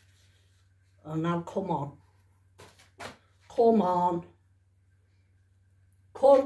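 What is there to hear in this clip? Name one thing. Thin fabric rustles as it is stretched and handled.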